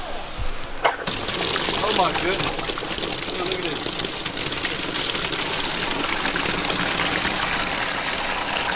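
Water gushes from a hose and splashes into a plastic tub.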